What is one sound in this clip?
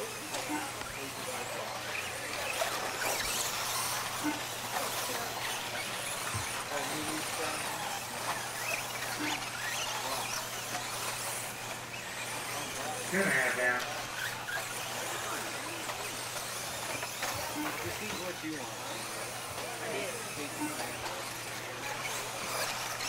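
A small radio-controlled car's electric motor whines as it races around a dirt track.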